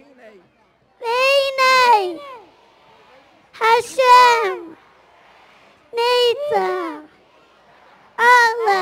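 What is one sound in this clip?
A young boy chants loudly into a microphone, heard through loudspeakers.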